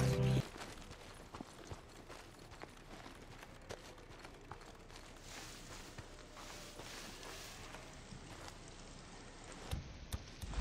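Footsteps rustle through grass and brush.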